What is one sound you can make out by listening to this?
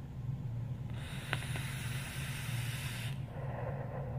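A vape device hisses as a young man draws on it.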